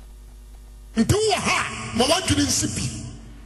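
A man preaches forcefully into a microphone, heard through loudspeakers.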